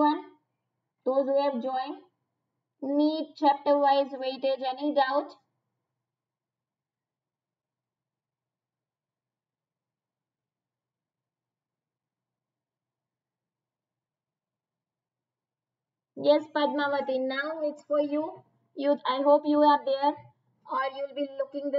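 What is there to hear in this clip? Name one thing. A young woman speaks calmly and clearly into a microphone, pausing now and then.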